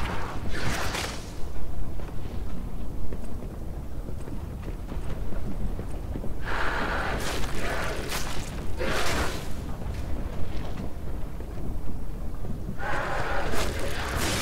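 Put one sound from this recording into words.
A young man talks into a microphone in a close, casual voice.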